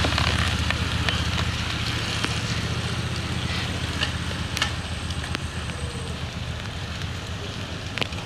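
Bicycle tyres hiss on a wet road.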